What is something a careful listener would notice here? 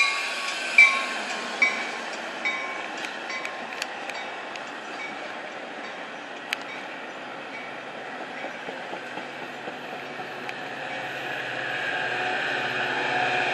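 A passenger train rumbles along the tracks close by.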